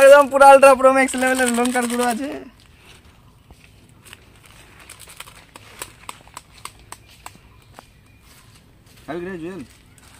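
Paper crinkles as a young man unwraps a small packet.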